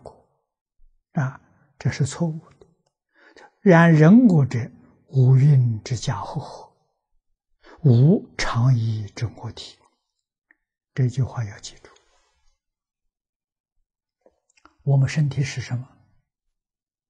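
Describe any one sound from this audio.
An elderly man speaks calmly and slowly into a close microphone, with pauses between phrases.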